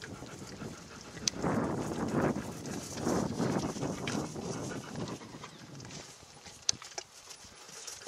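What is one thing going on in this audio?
A horse's hooves thud softly on dry grass at a trot.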